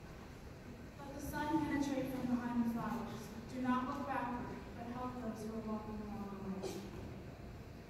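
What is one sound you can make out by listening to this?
A woman sings solo into a microphone in a reverberant hall.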